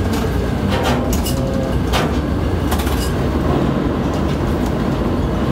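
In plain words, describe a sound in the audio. A crane's machinery hums with a low, steady rumble.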